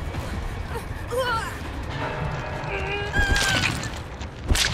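A young woman screams in terror.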